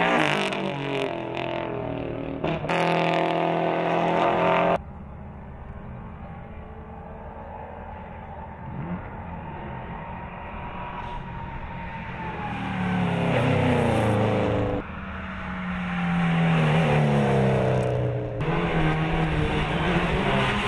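Racing car engines roar and rev at high speed.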